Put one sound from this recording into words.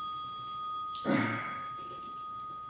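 Clothing rustles softly as a man bows to the floor.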